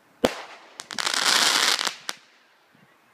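A firework crackles and sizzles in the sky.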